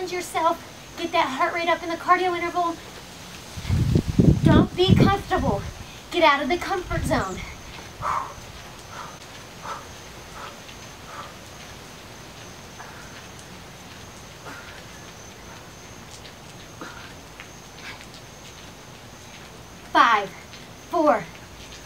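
A young woman speaks clearly into a microphone, coaching with energy.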